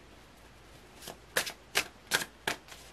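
Playing cards are shuffled and slapped together by hand.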